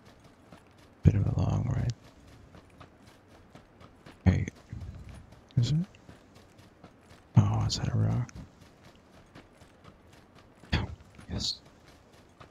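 A young man talks briefly into a microphone.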